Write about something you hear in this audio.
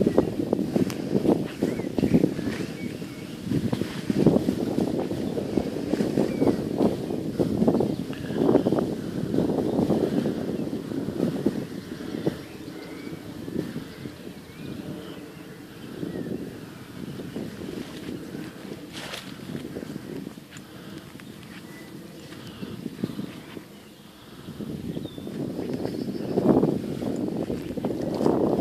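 Horses' hooves thud softly on grass.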